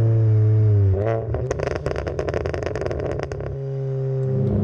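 An exhaust pops and crackles rapidly.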